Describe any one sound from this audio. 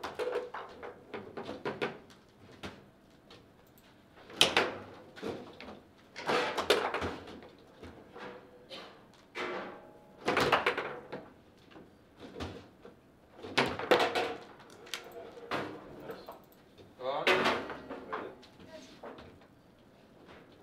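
A foosball ball knocks and clatters against the rods and table walls.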